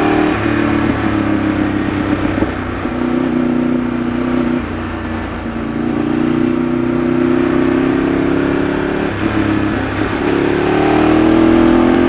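A V-twin sport motorcycle engine hums as it cruises along a winding road.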